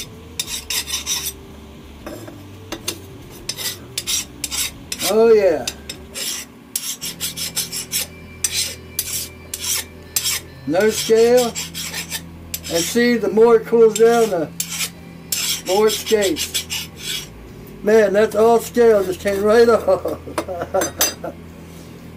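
Metal blades click and tap against each other.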